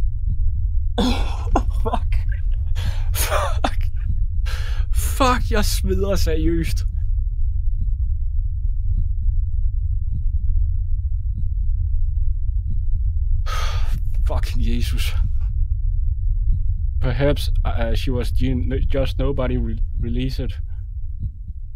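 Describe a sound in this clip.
A young man speaks quietly and thoughtfully into a close microphone.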